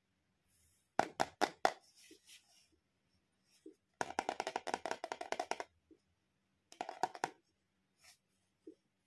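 A plastic toy soap box rattles.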